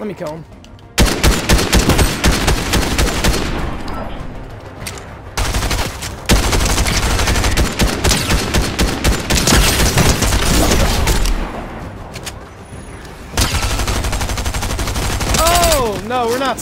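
An automatic rifle fires rapid bursts of shots.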